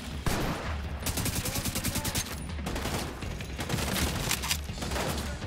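Rapid gunfire cracks in quick bursts.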